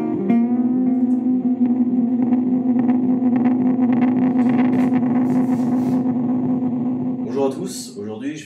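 An electric guitar plays a distorted, sustained riff.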